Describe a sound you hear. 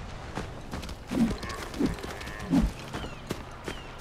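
A deer's hooves thud on the ground as it runs off.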